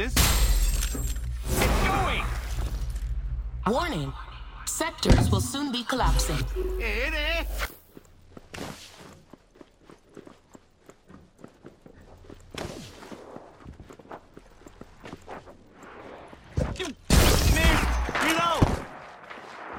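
An energy weapon fires in loud, crackling bursts.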